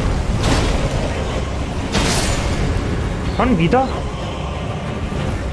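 Fire crackles and roars on a creature's tail.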